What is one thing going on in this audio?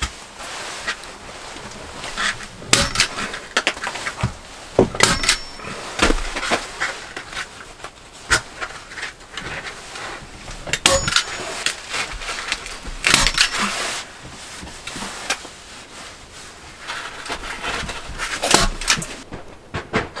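Plastic sheeting rustles and crinkles as it is hung.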